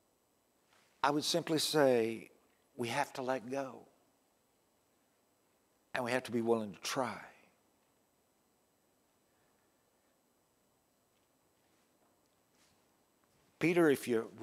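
An older man speaks with feeling into a microphone, in short bursts with long pauses.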